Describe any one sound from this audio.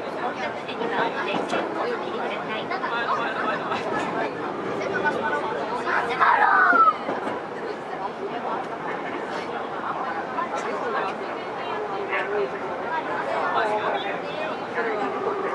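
A stopped subway train hums steadily under an echoing platform roof.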